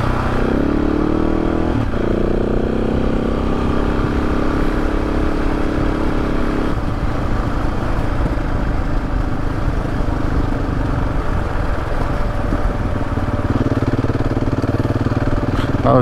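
Wind buffets loudly against the rider.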